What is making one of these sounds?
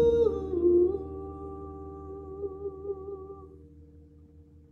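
A man sings a long, held note that slowly fades.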